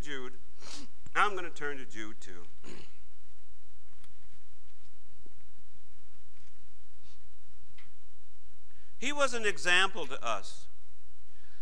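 A middle-aged man speaks calmly through a microphone, pausing between phrases.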